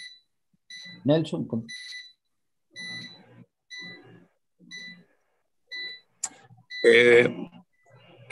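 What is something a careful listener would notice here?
A second man speaks briefly through an online call.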